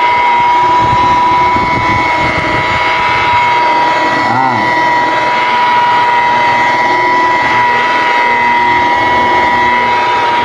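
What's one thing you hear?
An electric polisher whirs steadily as it buffs a surface.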